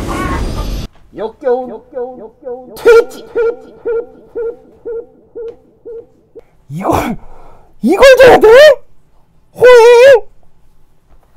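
A young man talks and whines in a drawn-out, sing-song voice into a close microphone.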